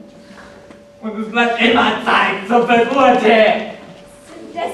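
A young girl speaks loudly and with animation in a large hall.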